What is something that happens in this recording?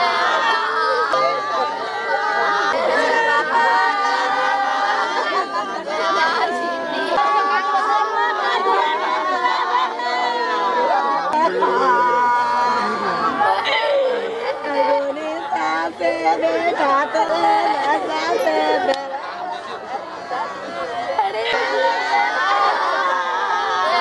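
Women wail and cry loudly nearby.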